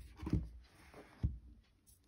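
A fingertip taps on a tablet's back.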